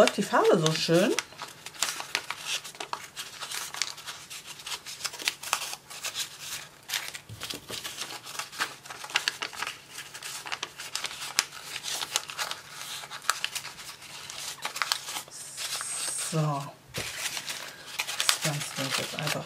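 Tissue paper crinkles and rustles between fingers.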